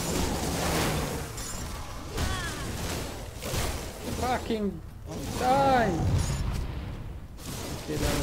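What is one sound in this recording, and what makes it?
Spell blasts and weapon hits crackle and thump in a fight.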